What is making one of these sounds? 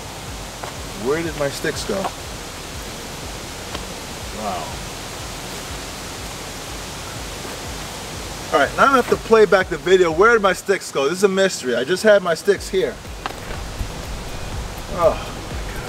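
A man talks with animation close by, outdoors.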